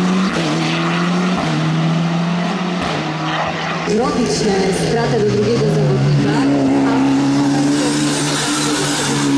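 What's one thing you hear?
A race car engine roars loudly, revving up and dropping with gear changes.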